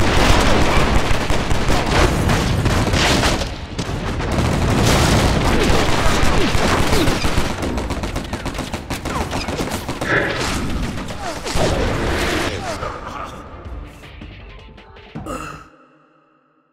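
Pistols fire rapidly in a loud gunfight.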